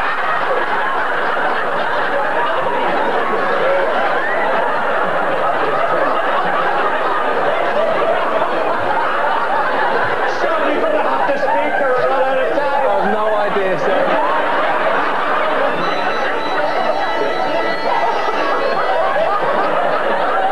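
An older man laughs loudly and heartily into a microphone.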